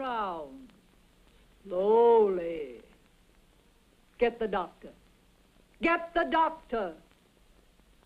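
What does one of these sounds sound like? A young woman speaks in a bright, lilting voice.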